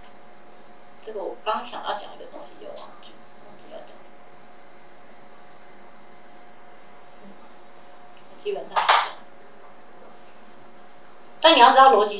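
A woman speaks into a microphone through a loudspeaker, in short bursts with long pauses.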